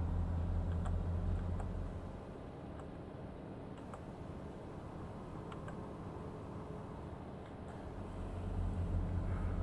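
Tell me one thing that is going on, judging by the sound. A bus engine hums steadily, louder at the start and end.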